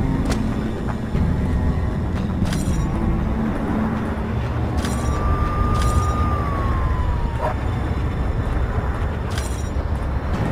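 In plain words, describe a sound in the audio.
Footsteps clank on metal grating.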